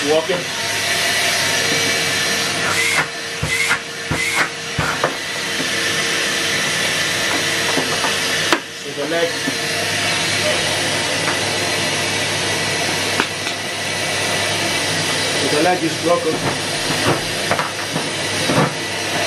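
A plastic vacuum cleaner knocks and clunks as it is handled and turned over.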